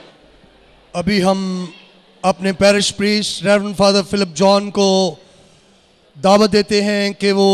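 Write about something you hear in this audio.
A man speaks loudly with animation through a microphone and loudspeakers.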